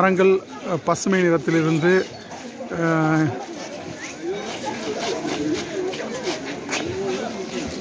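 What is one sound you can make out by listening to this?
A crowd of people chatters outdoors.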